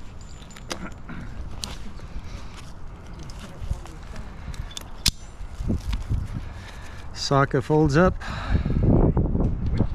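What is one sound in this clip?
Metal climbing gear clicks and clanks.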